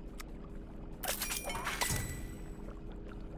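A bright magical chime rings out as a treat pops into view.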